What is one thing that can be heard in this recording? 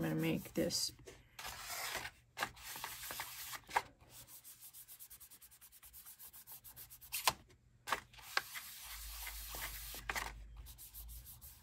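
Hands rub and slide paper across a table.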